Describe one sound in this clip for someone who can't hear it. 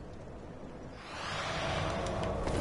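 A burst of fire roars and crackles.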